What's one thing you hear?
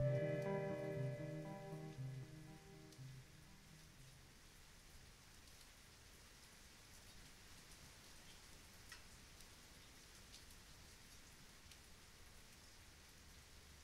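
Light rain patters softly against a window.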